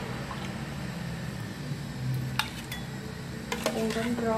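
A ceramic bowl clinks softly as food is set into it.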